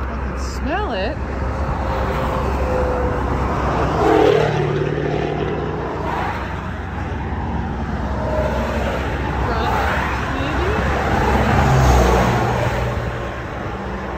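A large vehicle's engine idles with a low rumble nearby.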